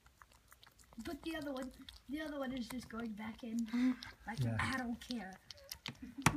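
A dog whimpers and whines softly close by.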